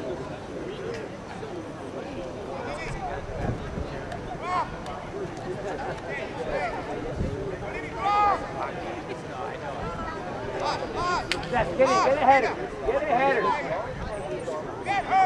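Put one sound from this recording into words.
Young players shout to each other in the distance outdoors.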